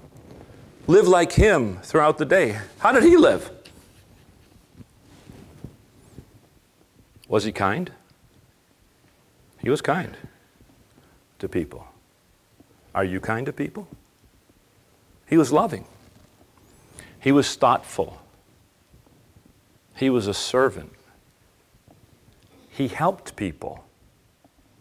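A middle-aged man speaks slowly and calmly into a microphone, with pauses between phrases.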